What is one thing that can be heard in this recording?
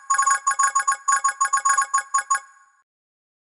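Quick bright chimes ring out in a fast run as gems are collected.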